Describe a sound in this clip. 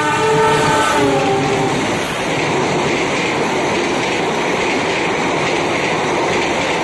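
Train wheels clatter loudly over the rails close by.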